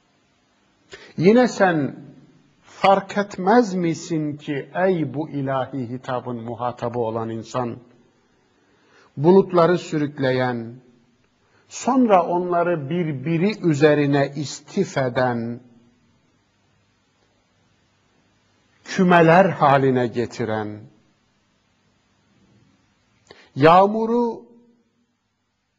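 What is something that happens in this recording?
A middle-aged man speaks calmly and expressively into a close microphone, with pauses.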